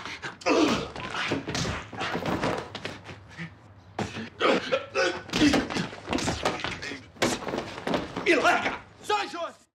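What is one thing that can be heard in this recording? Two young men grunt and shout as they struggle, close by.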